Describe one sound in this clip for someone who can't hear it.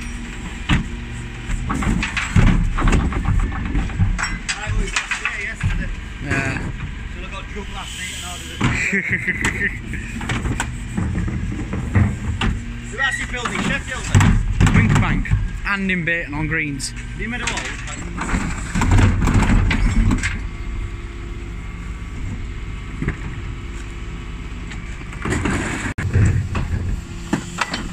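A bin lift on a refuse truck whirs and clanks as it tips wheelie bins.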